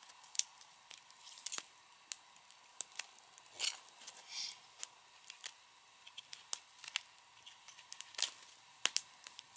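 Dry twigs snap and crackle as they are broken by hand.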